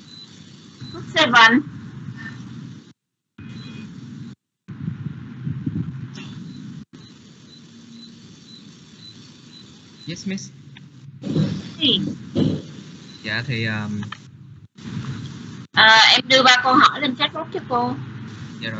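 A woman speaks over an online call, calmly, in short bursts.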